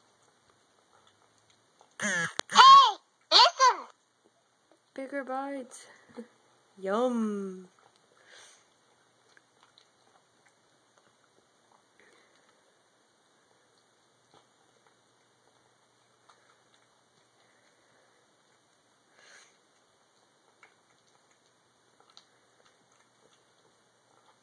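A cat eats from a bowl with soft, wet chewing and lapping.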